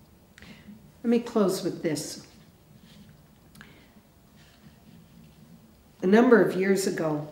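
An elderly woman speaks slowly and calmly into a microphone.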